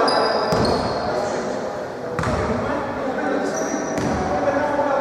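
A basketball bounces on the floor with a hollow thud.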